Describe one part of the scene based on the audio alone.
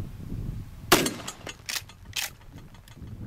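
Bullets strike a steel target with sharp metallic clangs.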